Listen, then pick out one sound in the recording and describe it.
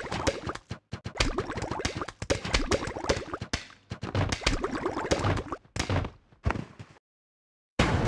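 Game plants lob projectiles with rapid popping and thudding.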